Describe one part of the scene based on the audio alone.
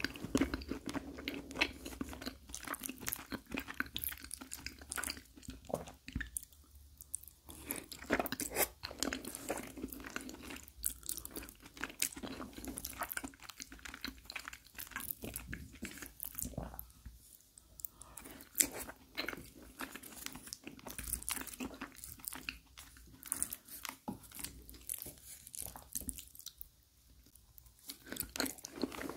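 A man chews food wetly and smacks his lips close to a microphone.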